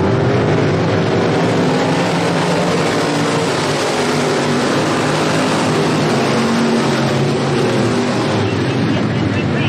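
Race car engines rise and fall in pitch as the cars pass close by.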